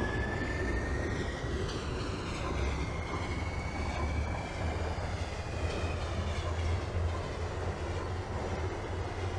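Steel wheels of a subway train rumble on rails in a tunnel.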